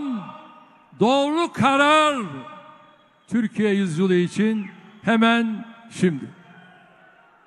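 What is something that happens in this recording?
An elderly man speaks forcefully through a microphone over loudspeakers.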